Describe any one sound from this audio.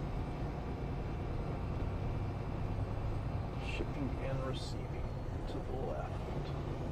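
A vehicle engine rumbles low and steady while driving.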